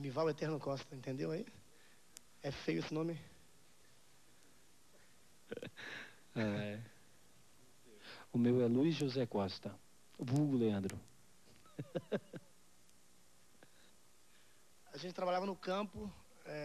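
A man sings softly into a microphone, in short phrases with pauses.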